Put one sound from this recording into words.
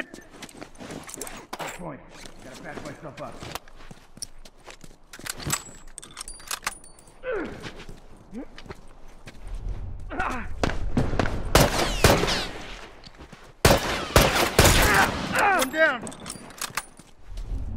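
Footsteps scuff on hard ground.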